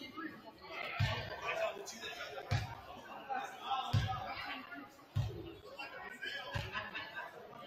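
A basketball bounces on a wooden court several times.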